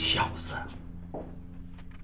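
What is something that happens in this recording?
A young man laughs softly nearby.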